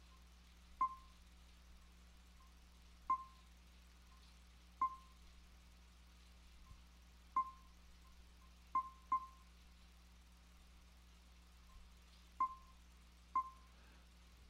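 Short, bright menu blips sound now and then as a selection moves.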